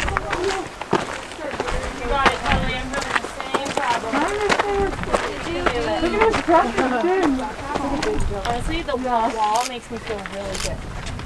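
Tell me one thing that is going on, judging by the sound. Young women talk and chat nearby, outdoors.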